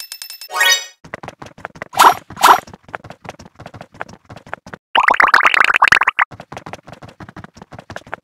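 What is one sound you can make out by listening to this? Many small game pieces click and clatter rapidly.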